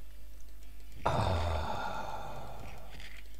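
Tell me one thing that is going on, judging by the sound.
A creature screeches as it dies.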